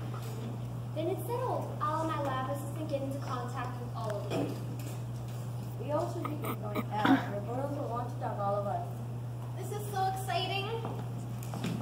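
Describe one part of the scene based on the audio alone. Young women speak lines with animation in a large echoing hall.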